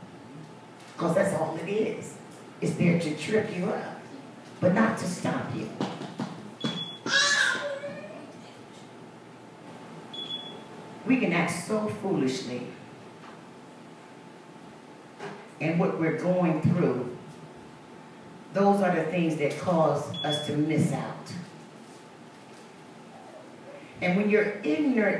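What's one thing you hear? A man preaches with emphatic bursts and pauses, heard through a loudspeaker in an echoing room.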